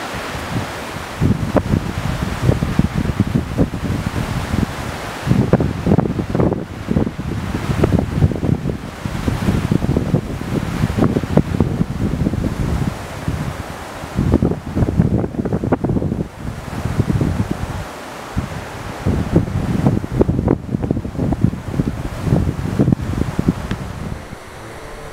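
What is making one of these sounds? Strong wind gusts roar and buffet the microphone outdoors.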